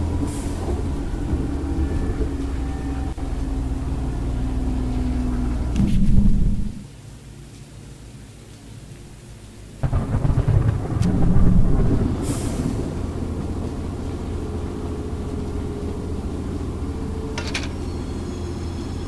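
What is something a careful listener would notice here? A locomotive engine rumbles steadily and deeply.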